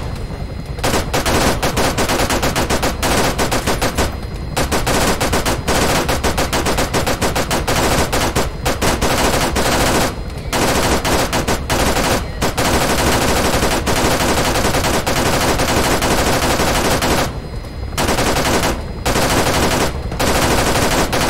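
A helicopter's rotor drones steadily.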